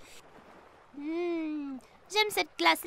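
A young boy hums with delight.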